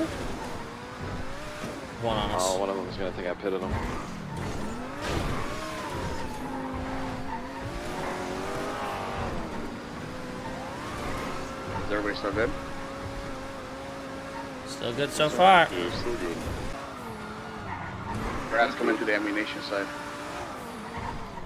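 A sports car engine hums and revs up and down.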